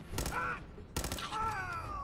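A rifle fires a loud shot that rings out in a large echoing space.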